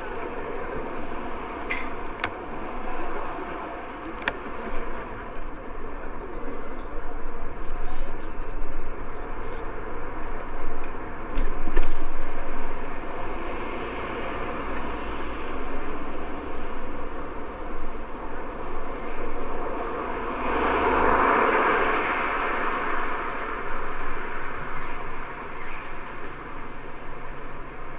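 Wind rushes and buffets loudly outdoors, with a gust swelling midway.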